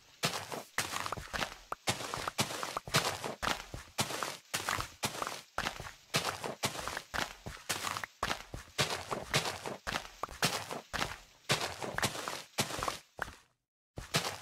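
Dirt crunches in quick, repeated bursts as blocks are dug with a shovel.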